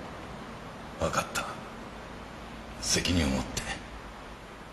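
A second man answers briefly.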